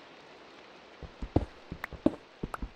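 A pickaxe knocks on stone in quick taps.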